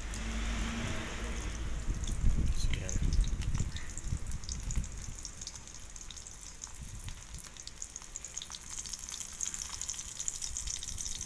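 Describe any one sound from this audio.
A fork scrapes and taps against a metal wok.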